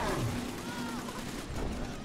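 A heavy machine gun fires rapidly.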